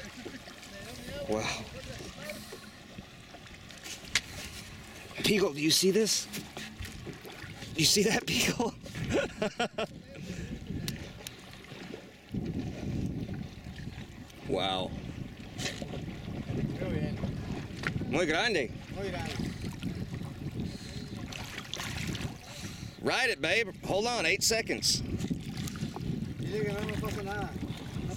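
Water sloshes and laps against the side of a boat.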